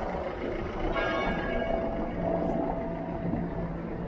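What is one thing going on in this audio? A car drives slowly past over cobblestones.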